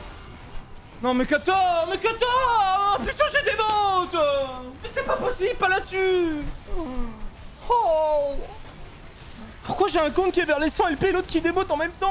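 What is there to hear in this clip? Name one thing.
A young man shouts and exclaims with animation close to a microphone.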